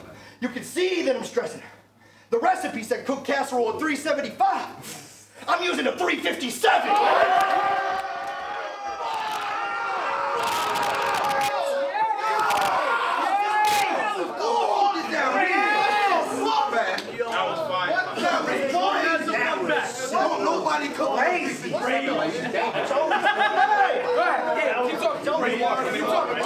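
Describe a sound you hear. A man raps rapidly and aggressively, close by.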